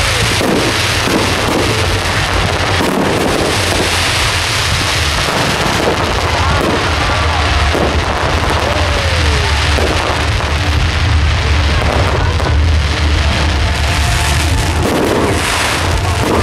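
Fireworks crackle and pop loudly overhead.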